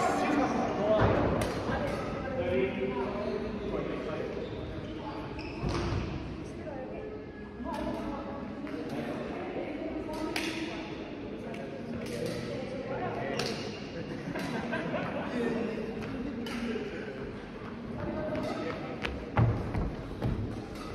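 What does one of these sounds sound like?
Several men talk and call out to each other.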